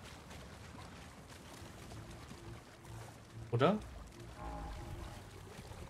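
Water splashes as someone wades and swims.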